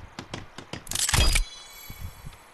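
A heavy wooden log drops into place with a loud knock.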